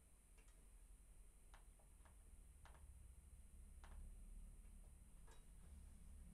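Computer keys click softly a few times.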